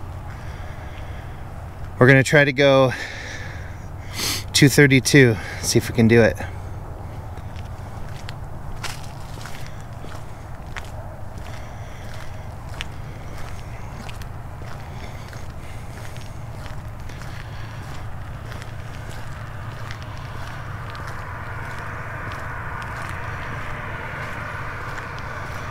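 Footsteps tread steadily on wet pavement outdoors.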